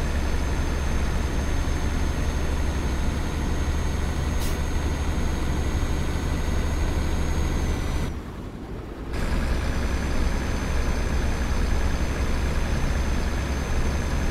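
A truck engine hums steadily on a highway.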